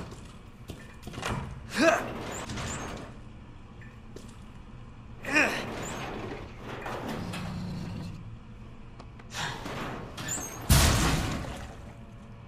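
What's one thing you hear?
A heavy cabinet scrapes and grinds as it is shoved across the floor.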